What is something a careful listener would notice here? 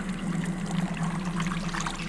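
Water drips and trickles from a wrung-out cloth.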